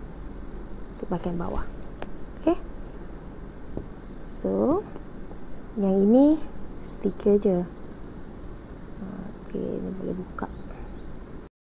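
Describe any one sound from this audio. A woman speaks close to a microphone with animation, in short bursts.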